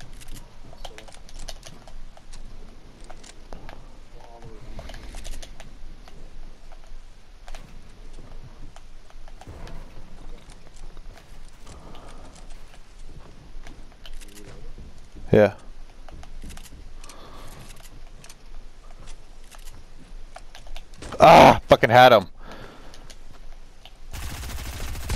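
Quick clicks and knocks of building pieces snapping into place sound in a video game.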